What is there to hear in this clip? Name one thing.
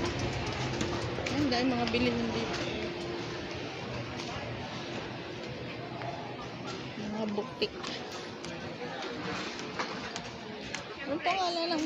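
A crowd murmurs in a busy indoor space.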